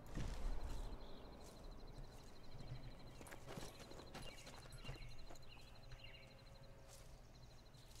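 Footsteps rustle through undergrowth and leaves.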